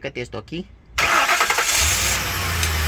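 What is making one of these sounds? An engine cranks over loudly.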